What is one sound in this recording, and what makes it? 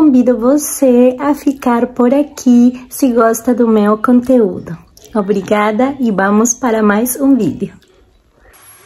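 A young woman talks animatedly and close up.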